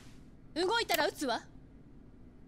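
A young woman speaks sharply and tensely.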